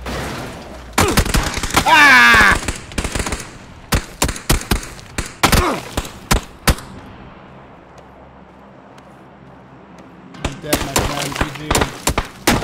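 Gunshots crack nearby in quick bursts.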